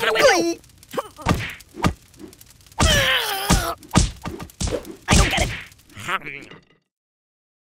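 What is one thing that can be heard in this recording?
Soft toys thump and smack as they are hit.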